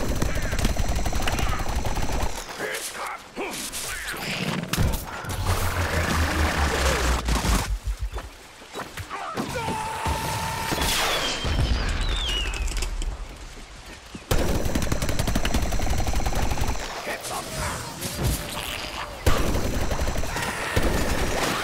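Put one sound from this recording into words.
Rapid cartoonish gunfire pops and bursts.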